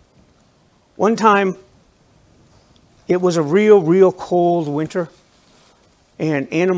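A middle-aged man speaks with emphasis through a microphone, in short bursts.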